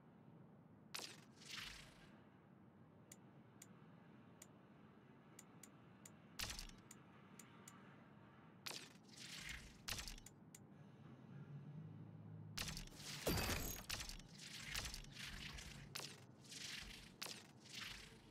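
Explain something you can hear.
Short menu clicks tick again and again.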